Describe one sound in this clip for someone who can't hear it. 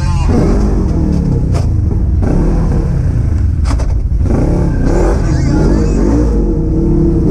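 An off-road vehicle's engine roars and revs up and down.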